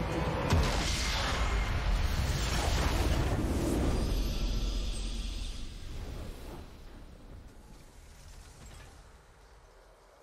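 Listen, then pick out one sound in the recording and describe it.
A triumphant fanfare swells and slowly fades.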